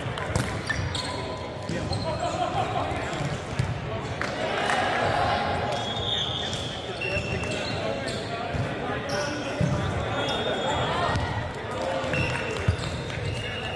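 A volleyball thumps off players' forearms and hands.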